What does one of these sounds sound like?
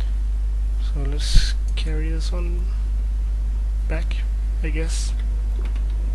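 A young man speaks quietly into a close microphone.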